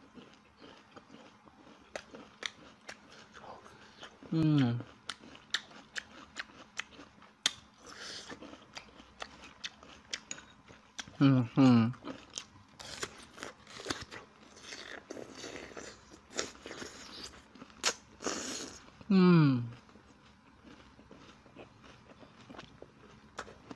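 A young man chews soft food wetly and noisily, close to a microphone.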